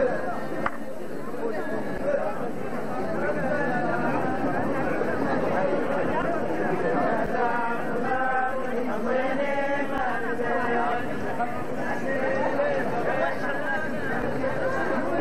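A crowd of men and women sing together loudly nearby.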